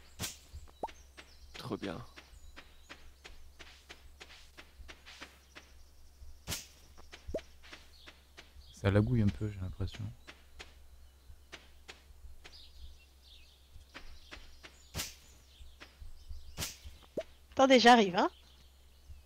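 Light footsteps patter quickly on dirt.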